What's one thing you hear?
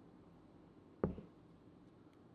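A ceramic bowl is set down on a wooden board with a dull thud.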